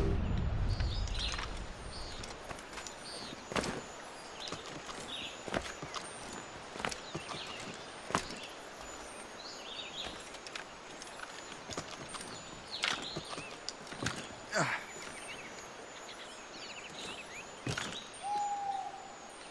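Hands scrape and grip on tree bark during a climb.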